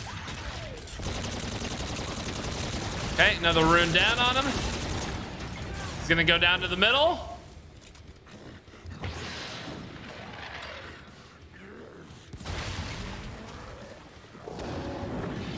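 Gunfire bursts rapidly from a weapon.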